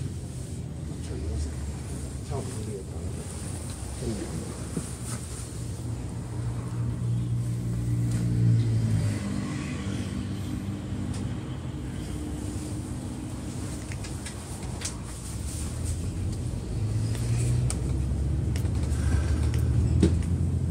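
Road traffic rumbles steadily nearby.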